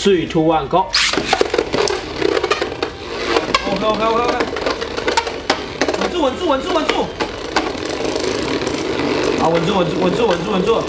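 Spinning tops whir steadily in a plastic arena.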